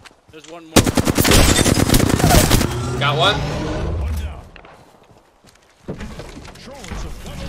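A young man talks with animation through a close microphone.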